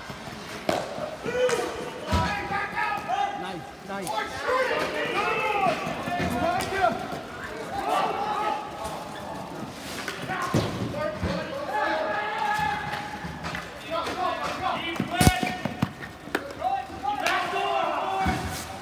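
Young players shout and call out to each other nearby.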